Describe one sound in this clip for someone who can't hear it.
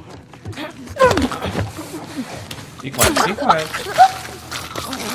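Heavy blows thud.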